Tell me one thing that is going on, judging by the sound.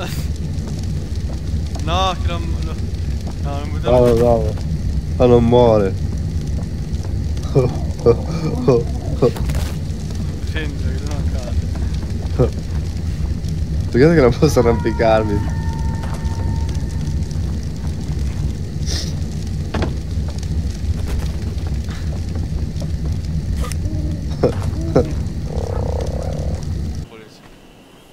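A torch fire burns with a low steady roar.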